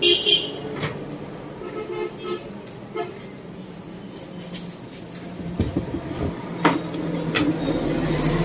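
Fingers knock and rub against a wicker chair frame.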